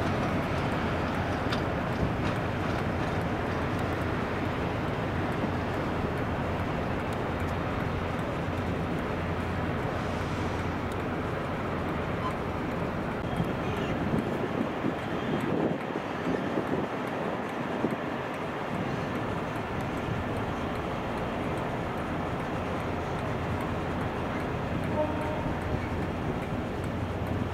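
Locomotive wheels clank and squeal slowly over rail points.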